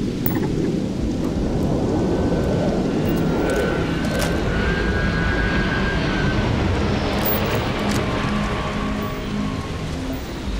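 A spacecraft roars overhead and fades into the distance.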